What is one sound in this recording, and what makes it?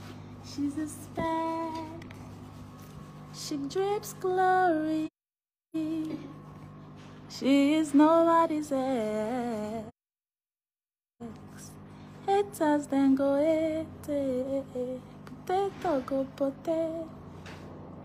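A young woman talks close to the microphone with animation.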